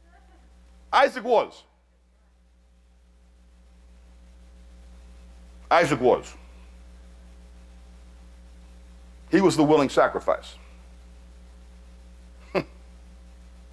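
A man speaks in short bursts through a microphone, with long pauses.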